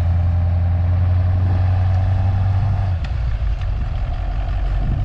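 A large truck engine rumbles deeply nearby.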